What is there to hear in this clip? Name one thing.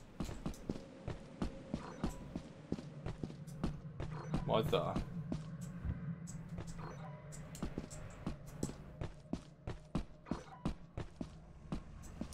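Footsteps crunch steadily over rocky ground.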